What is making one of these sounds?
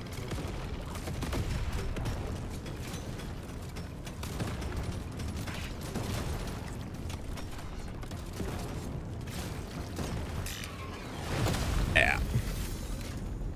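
Explosions boom in a game.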